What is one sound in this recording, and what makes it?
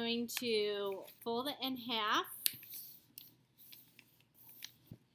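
Paper rustles and slides as hands smooth down a fold.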